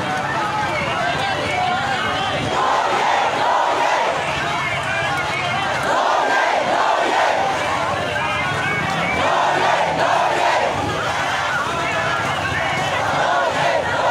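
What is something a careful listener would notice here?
A large crowd of men and women chants loudly together outdoors.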